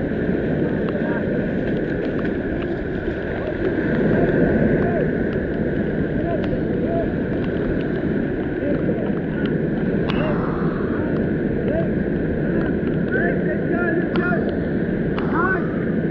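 Waves crash and wash up on the shore, outdoors in wind.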